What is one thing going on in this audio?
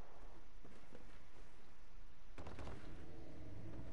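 Footsteps thump on wooden stairs.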